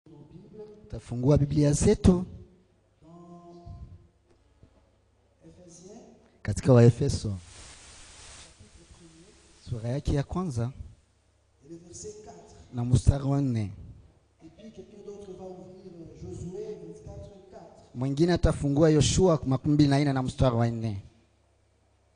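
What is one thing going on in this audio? A man speaks forcefully into a microphone over a loudspeaker, in bursts with pauses, in a large echoing room.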